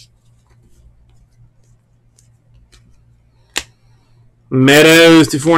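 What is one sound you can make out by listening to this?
Trading cards rustle and click softly as hands flip through them.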